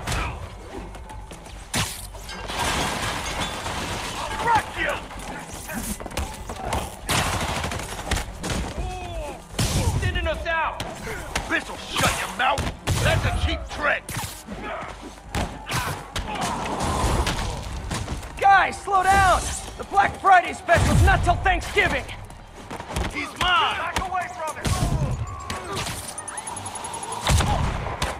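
Punches and kicks land with heavy thuds during a fight.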